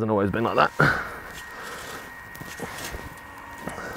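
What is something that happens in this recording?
A spade scrapes into sand.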